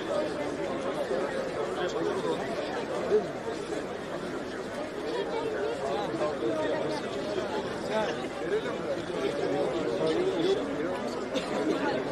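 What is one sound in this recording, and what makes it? A large crowd of men talks and murmurs all around, outdoors.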